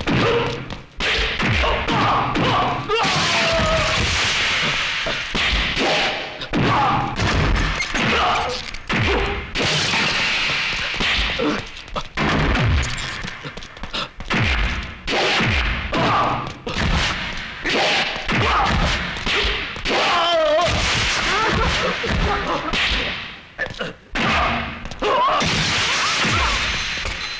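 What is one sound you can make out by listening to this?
Punches land with sharp thuds again and again.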